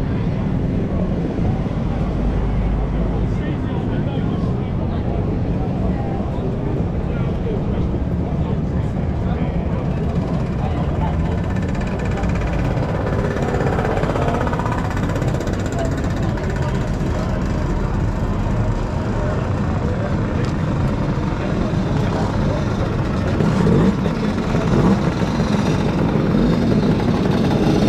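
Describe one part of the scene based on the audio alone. A crowd of adults chatters in the background.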